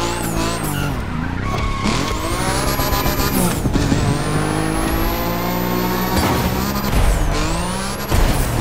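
A sports car engine revs hard and shifts gears.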